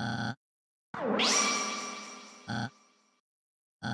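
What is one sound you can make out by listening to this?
A bright electronic sweep rises and slowly fades.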